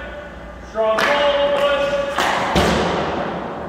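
A hockey stick slaps a puck sharply in a large echoing rink.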